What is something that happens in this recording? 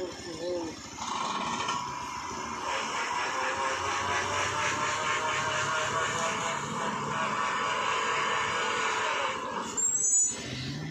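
A truck engine revs hard with a rising, straining whine.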